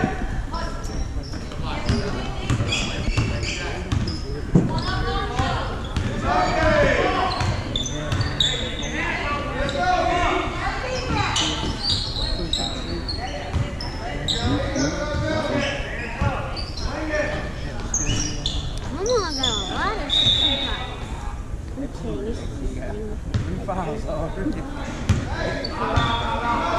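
Spectators talk and cheer nearby.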